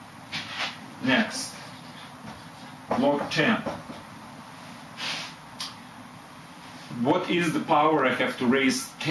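A man speaks calmly, close by, as if teaching.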